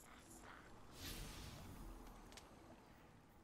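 A soft whoosh sweeps through as a game menu opens.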